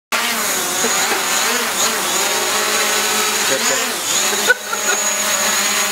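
A small drone's propellers buzz and whine steadily close by.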